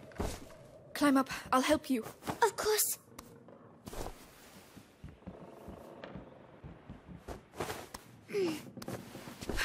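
A young woman grunts with effort as she lifts a boy.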